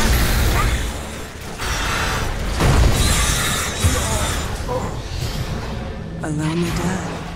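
Magic spells crackle and burst in a noisy battle.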